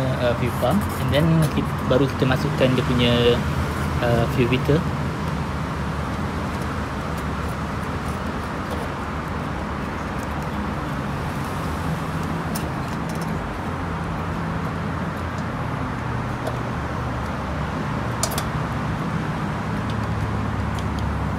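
Plastic parts click and scrape as they are fitted together by hand.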